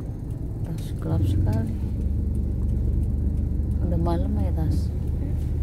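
A young girl speaks briefly and softly close by.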